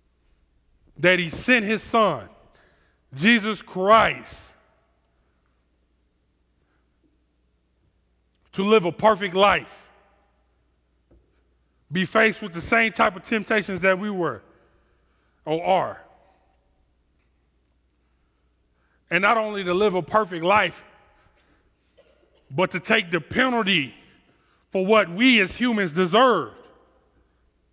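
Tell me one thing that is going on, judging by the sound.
A man speaks with animation through a headset microphone, in short bursts with pauses.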